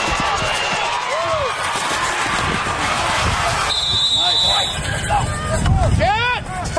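A large crowd cheers loudly outdoors.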